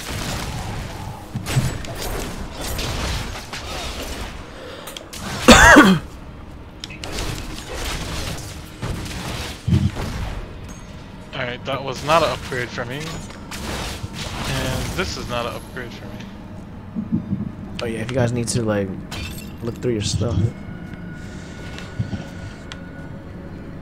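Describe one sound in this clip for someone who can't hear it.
Weapons strike and thud in a fierce fight.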